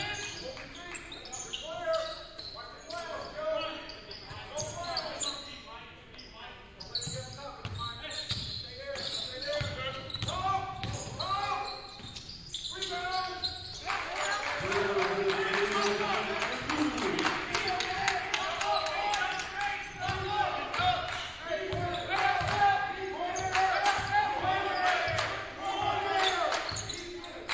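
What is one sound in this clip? Sneakers squeak on a hardwood floor.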